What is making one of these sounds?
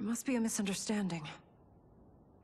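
A woman speaks anxiously, close by.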